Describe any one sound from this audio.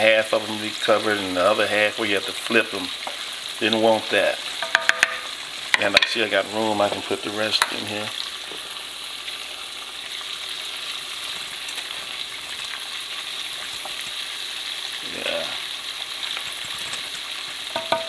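A wooden spoon stirs in bubbling oil.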